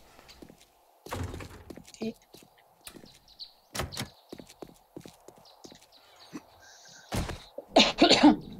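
Footsteps thud on wooden boards.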